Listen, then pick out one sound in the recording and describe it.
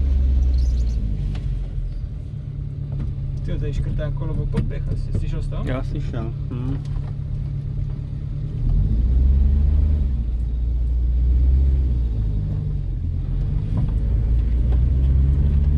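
An old car engine rumbles steadily from inside the car.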